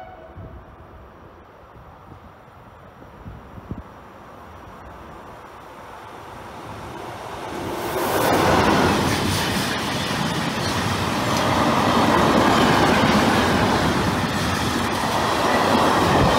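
A train approaches and thunders past close by with a loud rolling roar.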